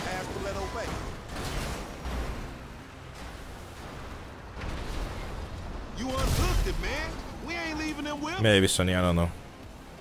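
A truck crashes and scrapes over the ground.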